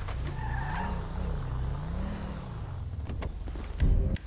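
A car engine rumbles low.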